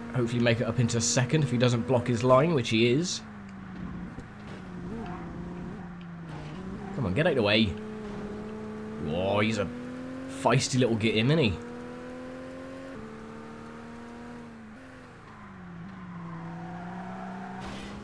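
A racing car engine drones steadily, its pitch rising and dropping with gear changes.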